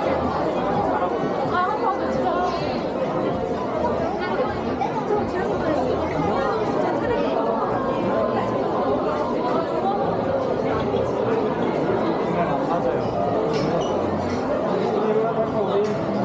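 A crowd of shoppers chatters steadily all around in a busy indoor hall.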